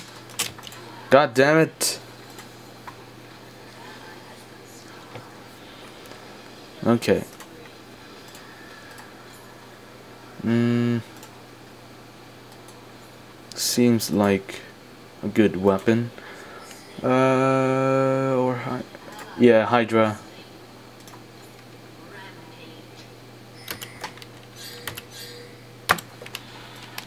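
Short electronic game sounds and chimes play from a small speaker.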